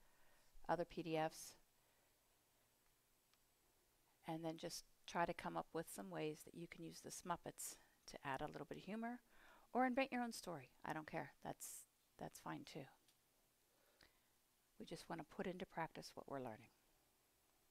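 A woman speaks calmly to an audience, heard from a distance.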